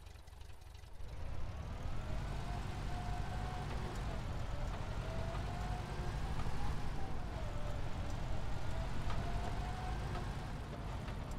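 A car engine drones steadily, its pitch rising and falling as the car drives.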